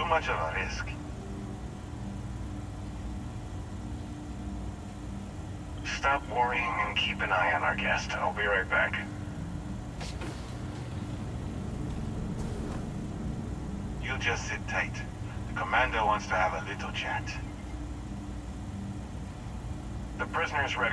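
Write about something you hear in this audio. A young man talks into a close microphone, casually.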